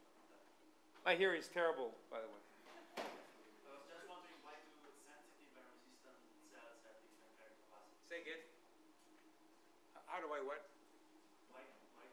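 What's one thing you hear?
A man speaks into a microphone in a large echoing hall, pausing often.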